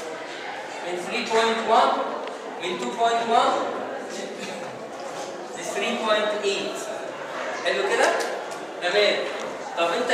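A man speaks calmly, as if lecturing in a room.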